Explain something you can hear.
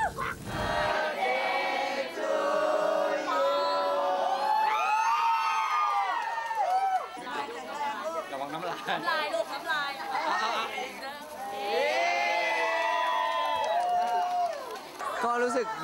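A crowd of people sings together loudly.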